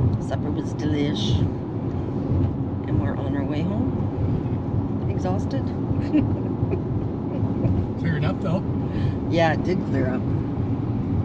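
A woman talks casually close by inside a car.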